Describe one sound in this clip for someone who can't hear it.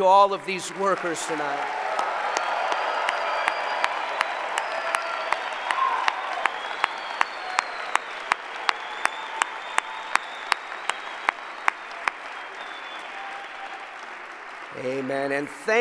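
A large crowd applauds and cheers.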